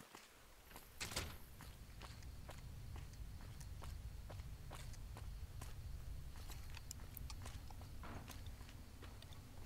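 Footsteps tap on hard ground at a steady pace.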